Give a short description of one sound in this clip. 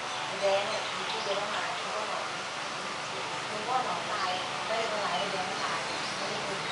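Adults talk at a distance outdoors.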